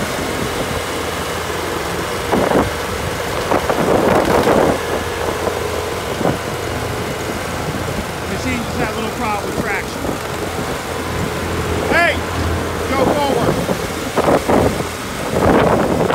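Metal clanks and rattles as a machine rolls onto a trailer ramp.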